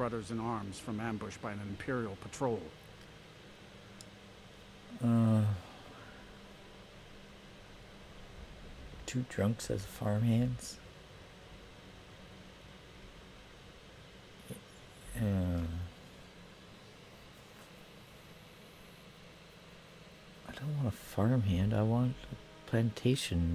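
A man speaks calmly and close by, in short phrases with pauses between them.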